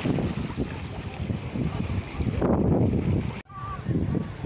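Shallow water laps and gurgles over rocks close by.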